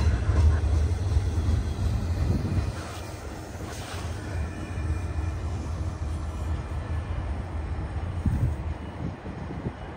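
A freight train rumbles and clatters past on the tracks, slowly fading into the distance.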